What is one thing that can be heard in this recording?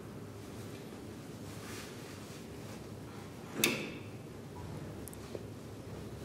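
An elevator hums steadily while moving.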